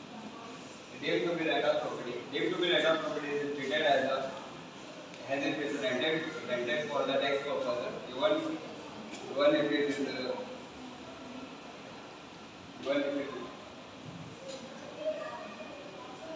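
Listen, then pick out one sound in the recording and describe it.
A young man speaks calmly to an audience.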